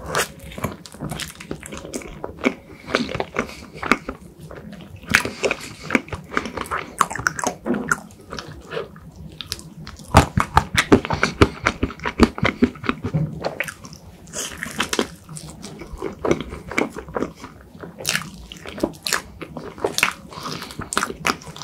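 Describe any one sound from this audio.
A young man bites into soft pastry with a squishy crunch.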